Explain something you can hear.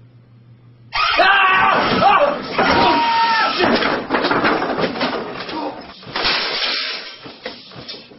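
A young man yells loudly close by.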